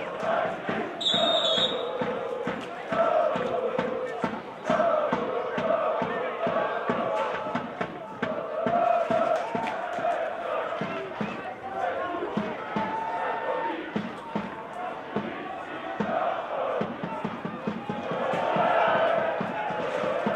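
A football stadium crowd chants in the stands outdoors.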